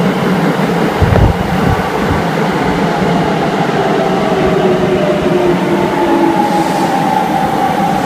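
A train's wheels clatter loudly as it rolls along the platform.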